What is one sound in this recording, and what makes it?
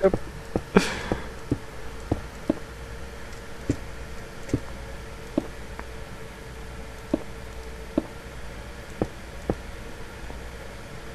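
Stone blocks knock as they are placed, one after another.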